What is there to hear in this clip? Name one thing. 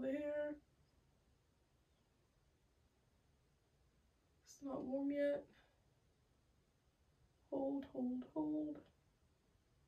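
A young woman speaks calmly and close by in short phrases.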